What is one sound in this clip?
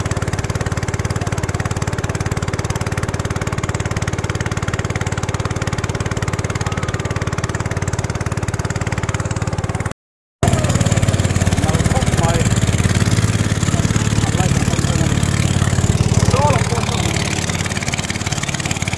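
A boat motor drones steadily.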